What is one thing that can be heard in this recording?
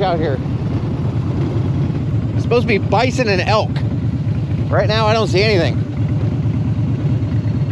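A motorcycle engine rumbles steadily at cruising speed.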